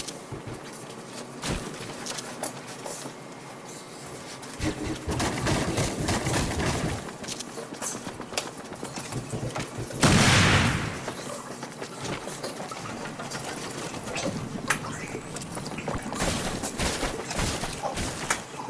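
Footsteps patter quickly over wood and grass.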